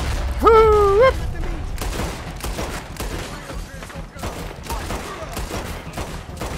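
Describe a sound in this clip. Gunshots crack repeatedly nearby.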